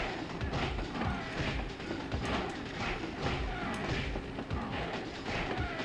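Punches land with dull thuds during a fight.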